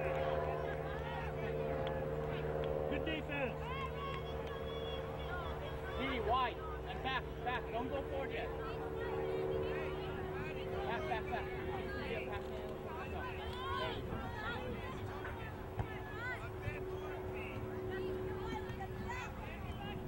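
Young women and adults shout and call out across an open field outdoors.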